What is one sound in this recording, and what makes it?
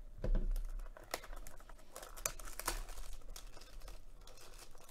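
Plastic shrink wrap crinkles and tears as fingers peel it off a box.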